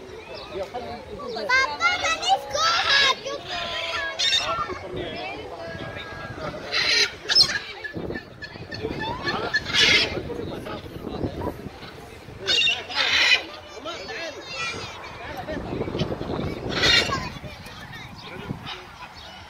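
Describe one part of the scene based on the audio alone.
Children and adults chatter in a crowd outdoors.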